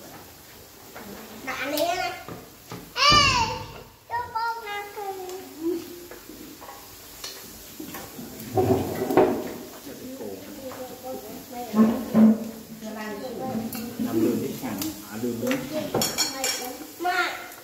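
Chopsticks clink against a pot.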